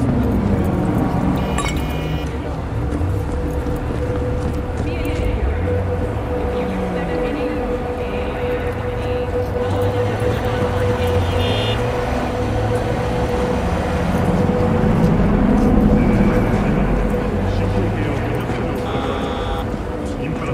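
Car engines hum as traffic rolls by.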